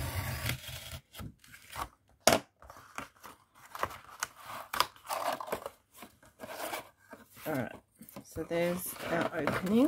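Cardboard creaks and crackles as it is folded.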